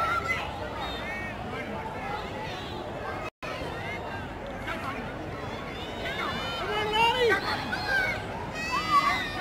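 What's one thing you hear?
A crowd of spectators shouts and cheers outdoors, growing louder toward the end.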